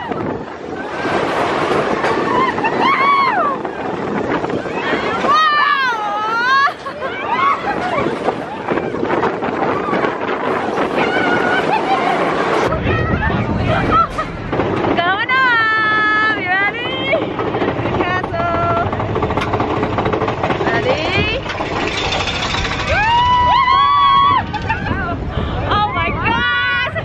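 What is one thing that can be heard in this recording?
Wind rushes past a moving coaster.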